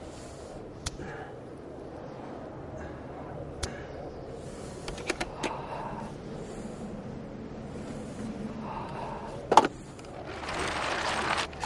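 Wires and metal parts click and scrape as hands work.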